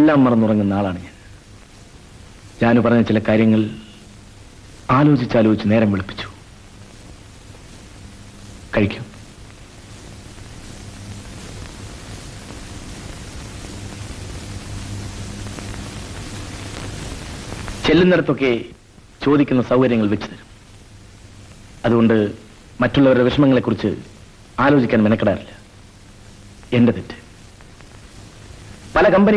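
A man speaks calmly at close range.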